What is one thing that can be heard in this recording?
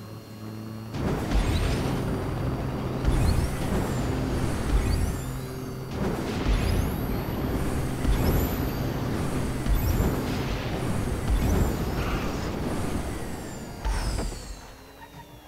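A jet booster roars loudly in bursts.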